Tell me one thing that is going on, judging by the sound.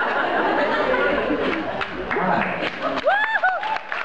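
A crowd laughs and cheers.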